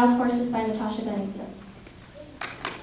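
A young woman sings softly into a microphone.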